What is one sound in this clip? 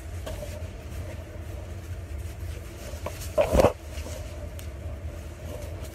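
Fabric rustles as it is handled close by.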